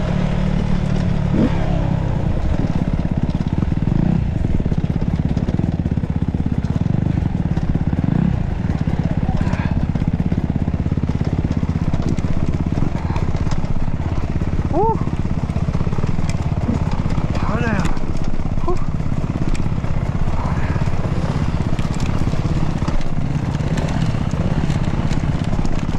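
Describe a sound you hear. Another dirt bike engine buzzes a little way ahead.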